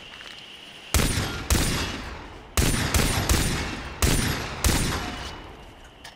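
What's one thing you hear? Pistol shots ring out in quick succession.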